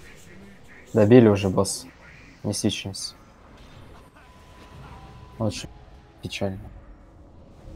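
Magic spells burst and crackle in a battle.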